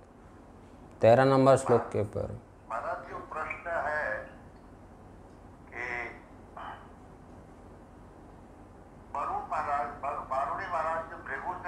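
An elderly man speaks calmly and slowly, close to a microphone, with pauses.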